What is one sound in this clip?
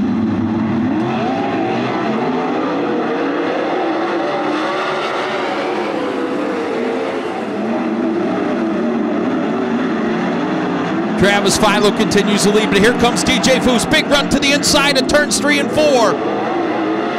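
Engines rise and fall in pitch as the cars speed up and slow down through the turns.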